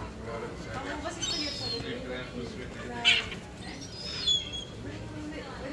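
Seagulls cry outdoors.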